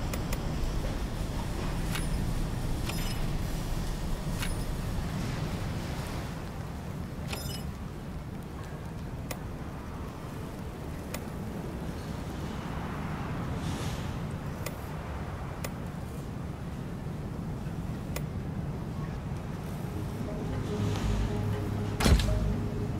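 Short computer game menu clicks sound now and then.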